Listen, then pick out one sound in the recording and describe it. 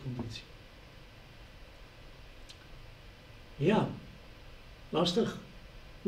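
A middle-aged man speaks calmly in short phrases, close by.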